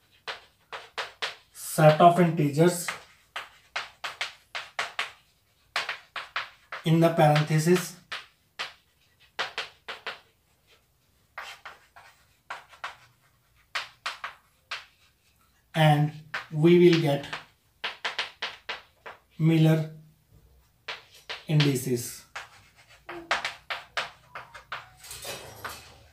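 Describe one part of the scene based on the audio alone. Chalk taps and scratches on a chalkboard in quick bursts.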